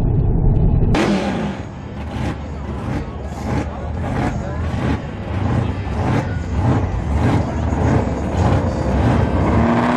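A car engine idles loudly with a rough, lumpy burble outdoors.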